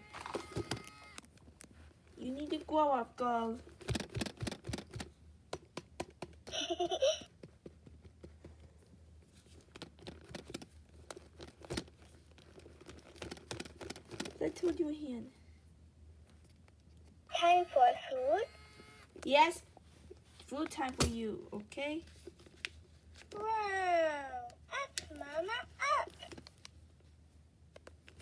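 Hands tap and rustle against a plastic doll.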